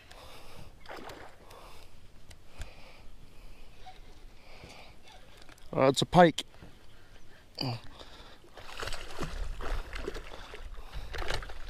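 A fish splashes at the surface of the water.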